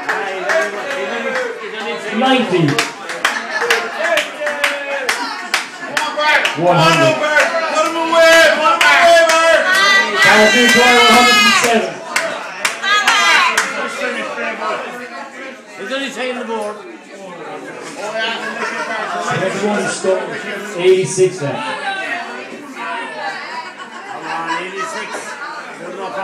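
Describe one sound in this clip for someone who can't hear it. Several men talk and shout loudly nearby, in a lively crowd.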